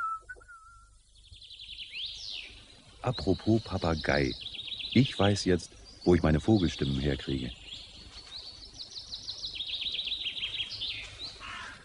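A bird chirps and trills repeatedly.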